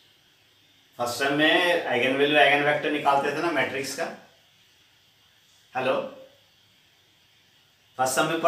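A man speaks clearly into a nearby microphone, explaining.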